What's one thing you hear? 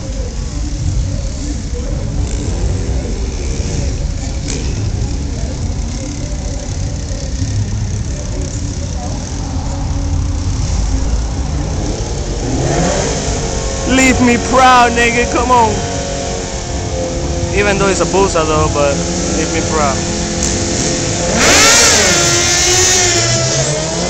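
Motorcycle engines idle with a low, steady rumble.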